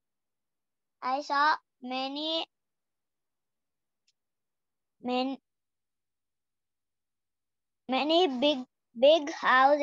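A young boy speaks close to a microphone in short bursts, heard through an online call.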